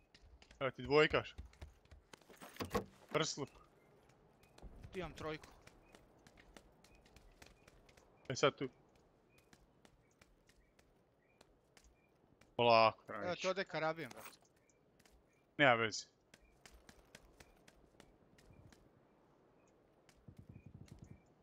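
Footsteps tread quickly on hard ground.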